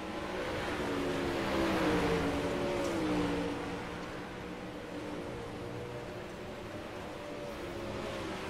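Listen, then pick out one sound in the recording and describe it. Racing car engines roar loudly and steadily, rising and falling in pitch.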